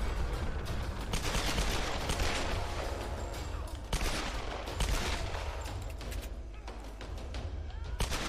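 A pistol fires single shots.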